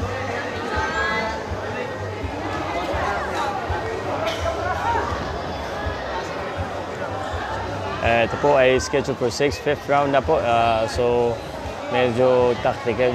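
A crowd murmurs and calls out throughout.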